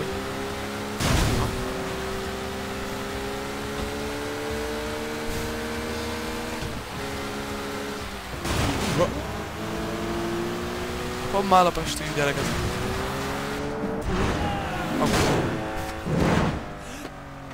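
A car crashes with loud thuds.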